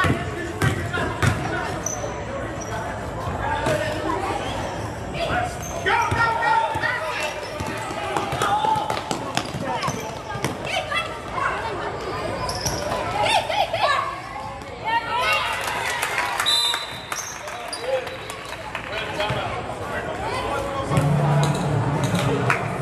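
Sneakers squeak on a gym floor as basketball players run.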